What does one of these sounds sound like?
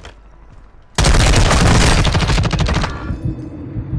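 A rifle fires rapid bursts of loud, close gunshots.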